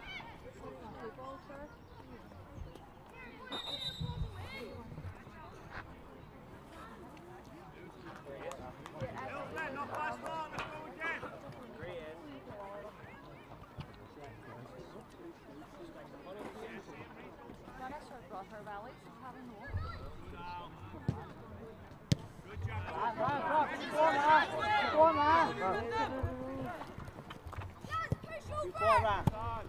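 Young players shout to each other across an open pitch outdoors.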